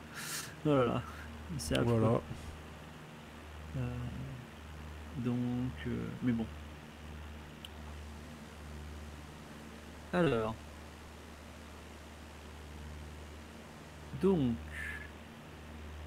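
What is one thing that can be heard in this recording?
A man talks with animation through a microphone, in short bursts.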